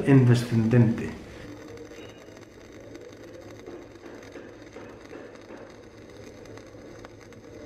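An electric welding arc crackles and sizzles steadily.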